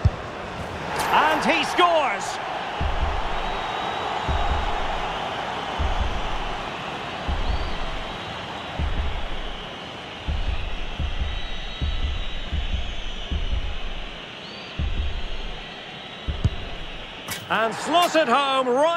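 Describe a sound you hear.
A stadium crowd cheers loudly after a penalty kick.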